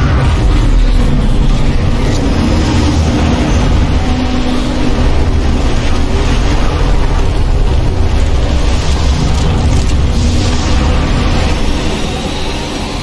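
A heavy aircraft engine roars with a deep, steady rumble.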